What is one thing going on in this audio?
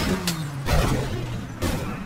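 A race car crashes and tumbles.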